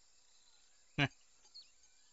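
A fishing lure splashes into water.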